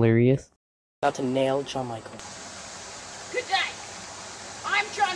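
A stream trickles over stones.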